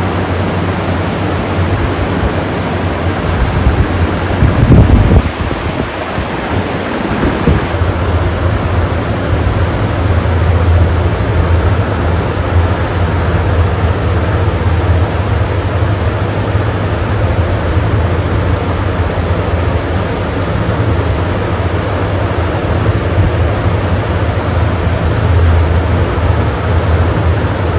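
Several electric fans whir steadily with a low hum.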